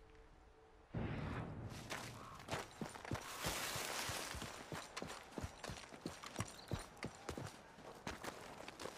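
Footsteps crunch on rocky gravel at a steady pace.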